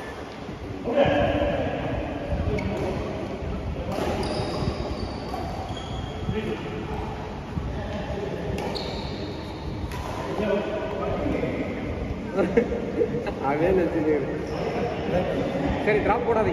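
Young men talk and call out across the court.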